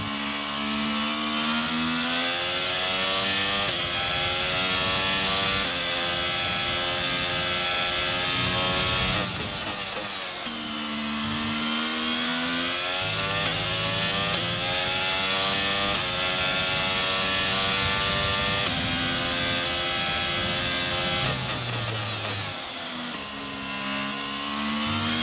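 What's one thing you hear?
A racing car engine screams at high revs, rising through the gears and dropping sharply when braking.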